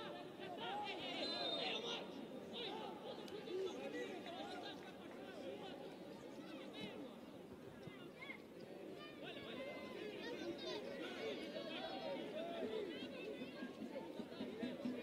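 A large outdoor crowd chatters and calls out steadily.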